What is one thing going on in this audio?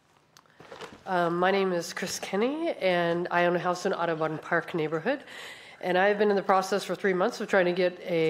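A woman speaks steadily and calmly into a microphone, heard through a hall's sound system.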